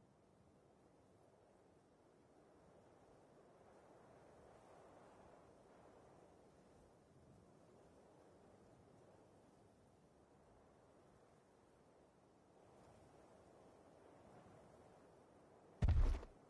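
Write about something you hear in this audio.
Water laps gently against a rocky shore.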